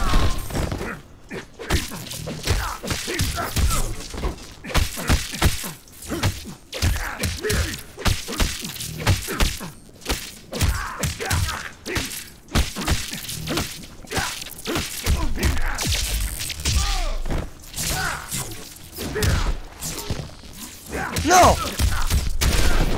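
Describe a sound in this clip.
Punches and kicks thud and crack in a fighting game.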